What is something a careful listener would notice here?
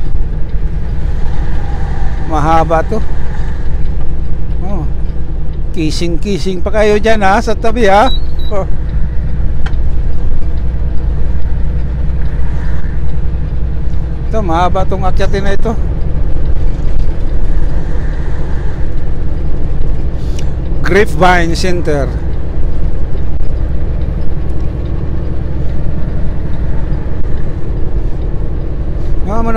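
A vehicle's engine and tyres rumble steadily as it drives along a highway, heard from inside the cab.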